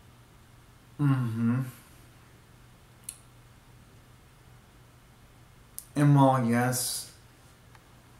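A young man makes short vocal sounds close by.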